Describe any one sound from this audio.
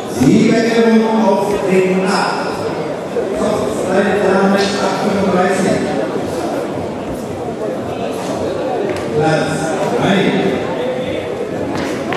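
Men talk in the background of a large echoing hall.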